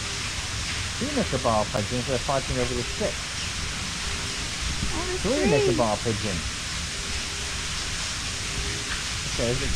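A young child talks close by in a high voice.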